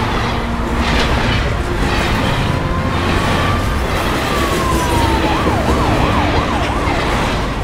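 Freight wagons rumble and clatter along a track.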